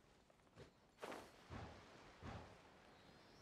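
A magical burst whooshes and chimes.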